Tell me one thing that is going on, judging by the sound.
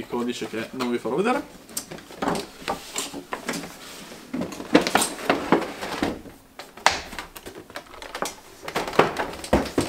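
Cardboard packaging rustles and scrapes as a box is opened.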